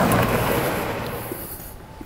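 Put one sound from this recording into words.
A car drives along a street.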